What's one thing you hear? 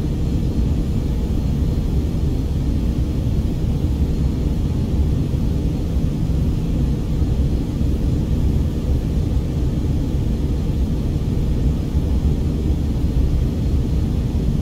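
Jet engines drone steadily in an aircraft cabin.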